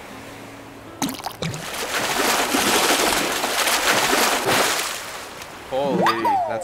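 A fish thrashes and splashes loudly in the water.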